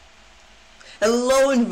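A boy speaks loudly into a microphone.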